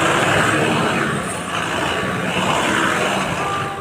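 People talk in a busy street nearby.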